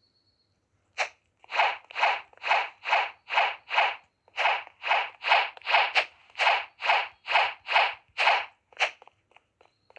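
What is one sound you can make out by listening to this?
Quick footsteps patter in an even rhythm.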